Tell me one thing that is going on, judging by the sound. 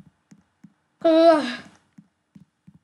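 A boy speaks briefly into a nearby microphone.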